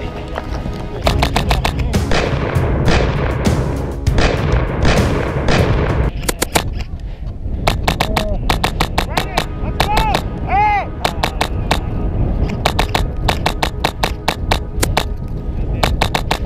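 An airsoft rifle fires rapid bursts of shots close by.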